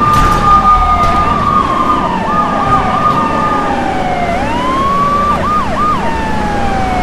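A car engine revs up and down as a car drives fast.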